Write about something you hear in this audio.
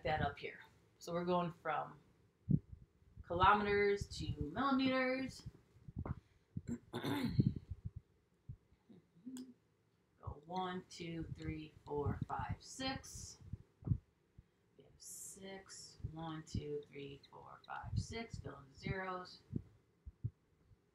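A young woman talks calmly and explains, close by.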